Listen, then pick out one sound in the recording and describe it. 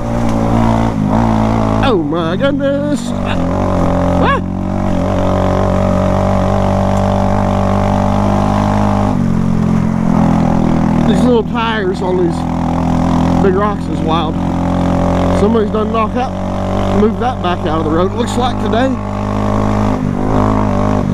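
A motorcycle engine hums steadily, rising and falling in pitch as it rides.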